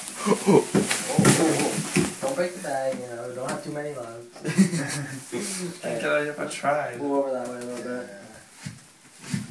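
Young men laugh and talk loudly close by.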